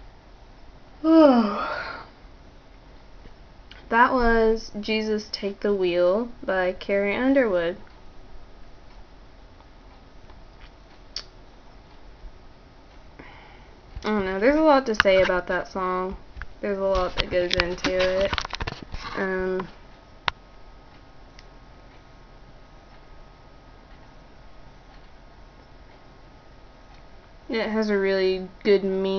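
A young woman speaks quietly and calmly, close by, in short bursts with pauses.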